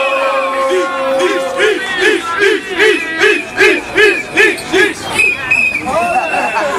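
A crowd of young people shouts in a rhythmic, repeated chant.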